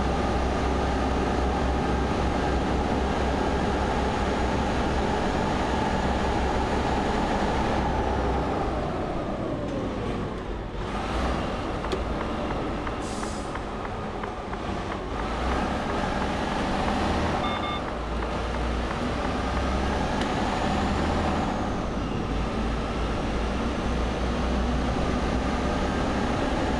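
A truck engine drones steadily, dropping in pitch as it slows and then rising again.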